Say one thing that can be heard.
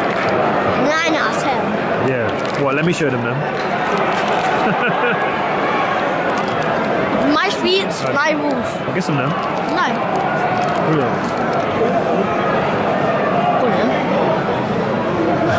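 A crowd murmurs and chatters in a large echoing stadium.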